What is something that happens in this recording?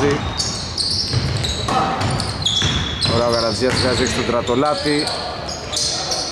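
Basketball players' sneakers squeak on a hardwood court in a large echoing hall.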